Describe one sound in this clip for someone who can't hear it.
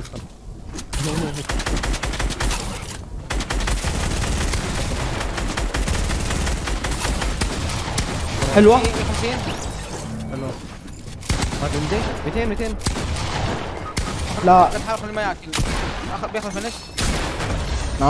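Gunshots crack in quick bursts in a video game.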